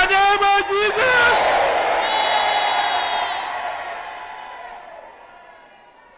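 A woman cries out loudly in prayer close by.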